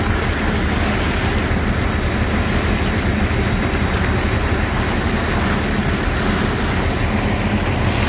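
Water and sand gush from a hose.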